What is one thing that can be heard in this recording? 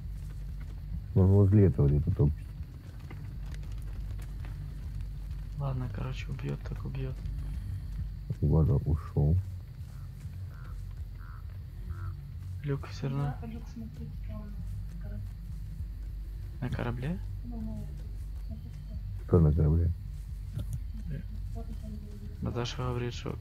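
Footsteps crunch through grass and dry ground.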